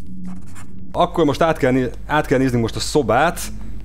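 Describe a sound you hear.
A middle-aged man talks with animation into a microphone, close by.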